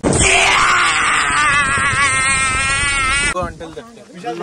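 A man laughs loudly and wildly close to the microphone.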